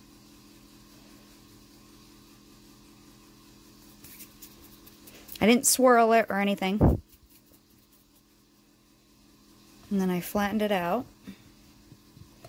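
Fingers knead and press soft clay.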